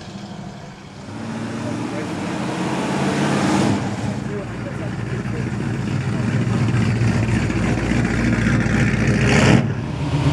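Cars rumble past one after another, their engines growing louder and fading.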